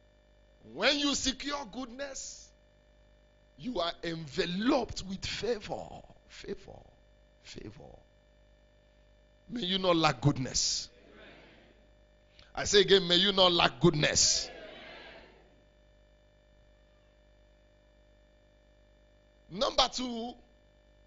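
A man preaches with animation into a microphone, his voice ringing through a loudspeaker in a large hall.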